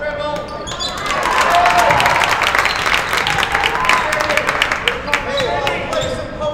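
A crowd cheers and claps loudly in an echoing gym.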